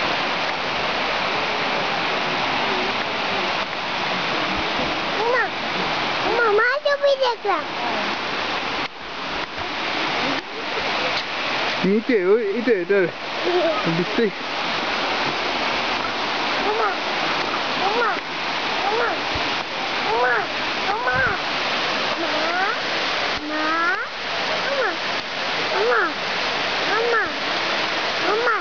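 Water rushes and roars steadily nearby.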